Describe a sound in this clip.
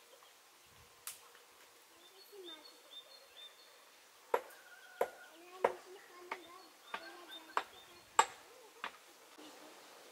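Young children talk softly some distance away.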